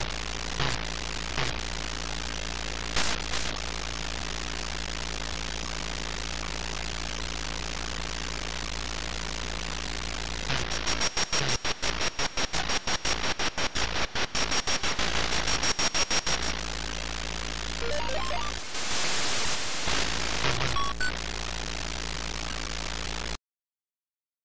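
A buzzy electronic engine drone hums steadily.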